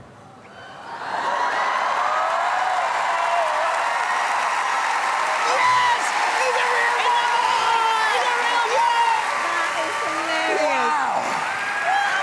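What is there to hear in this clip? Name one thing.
Men and women laugh and cheer loudly in a large echoing hall.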